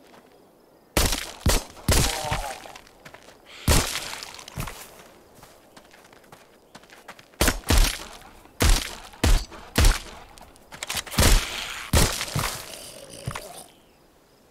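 Pistol shots ring out in quick bursts.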